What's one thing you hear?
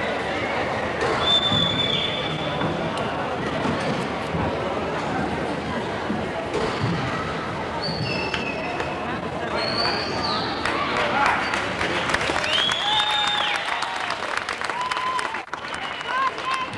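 A crowd of children and adults chatters throughout a large echoing gym.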